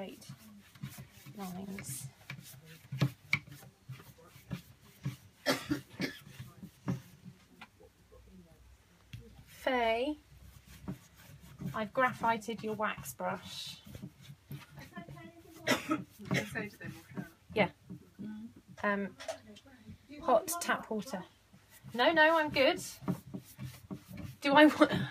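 A brush taps and scrubs against a wooden surface.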